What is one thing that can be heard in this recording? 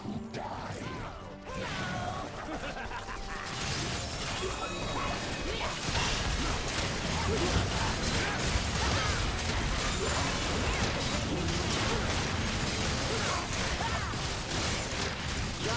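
Spell effects whoosh and crackle in a fast fight.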